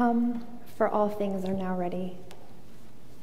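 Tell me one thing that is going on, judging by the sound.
A woman sings a sustained note through a microphone in a large echoing hall.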